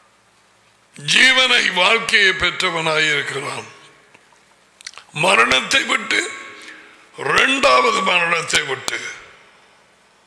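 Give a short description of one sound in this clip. A middle-aged man speaks forcefully and emphatically into a close microphone, with pauses between phrases.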